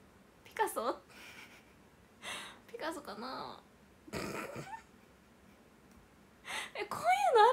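A young woman talks cheerfully and close to a microphone.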